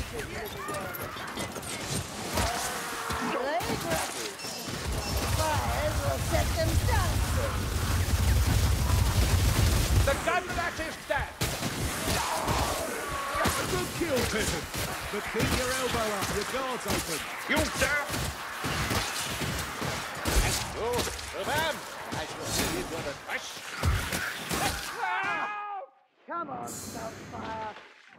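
Creatures snarl and shriek in pain.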